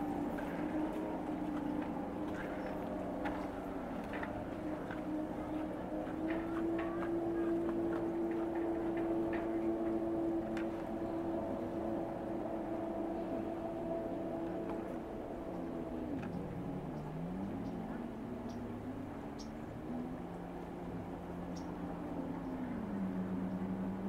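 A motorboat engine drones across the water, rising and falling in pitch.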